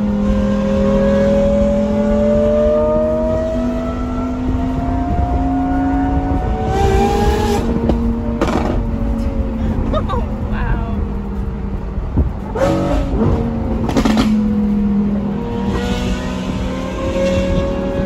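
A sports car engine drones loudly from inside the cabin, its pitch rising and falling with gear changes.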